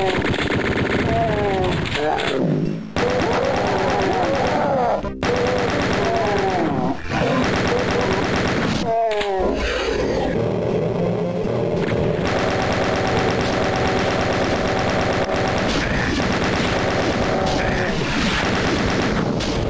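A shotgun fires repeatedly in a video game.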